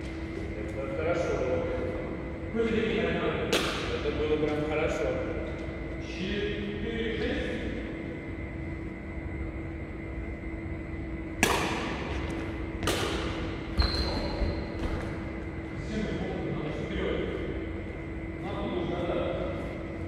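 A young man talks calmly nearby in an echoing hall.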